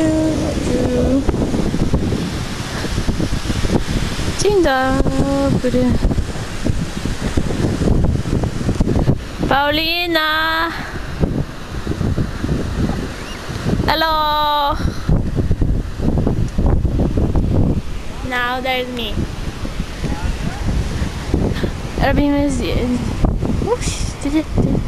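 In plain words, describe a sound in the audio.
Waves crash and wash onto the shore.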